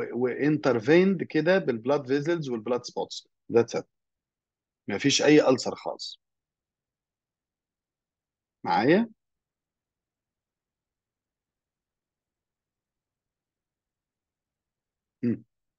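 A man speaks calmly through an online call microphone, explaining.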